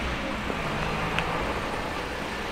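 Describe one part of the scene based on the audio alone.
A small van drives slowly along a narrow street nearby.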